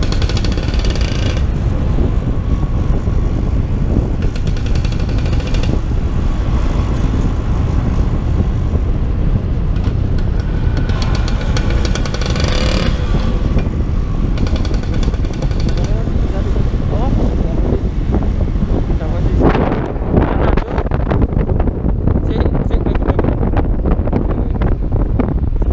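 Scooter engines hum steadily close by.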